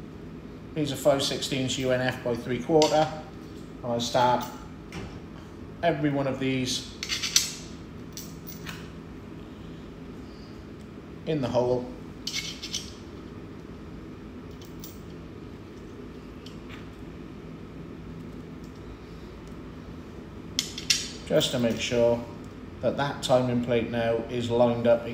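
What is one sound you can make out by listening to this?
Metal parts click and clink.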